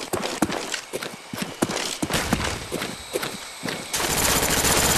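Footsteps thud quickly over dirt and leaves.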